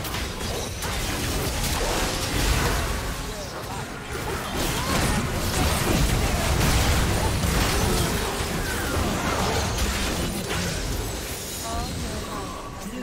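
Magic blasts and blows clash rapidly in a chaotic video game battle.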